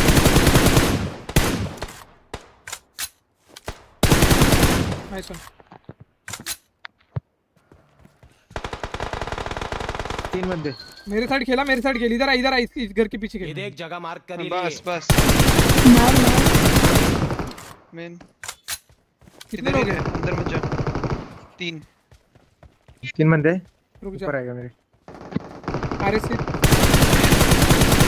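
Rapid gunfire bursts from a video game.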